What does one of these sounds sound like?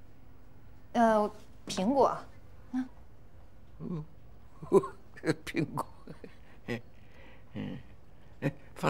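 A young woman speaks gently, close by.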